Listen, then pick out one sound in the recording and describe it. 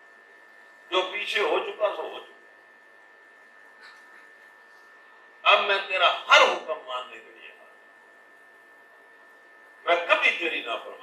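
An elderly man speaks with animation into a microphone, in bursts with pauses.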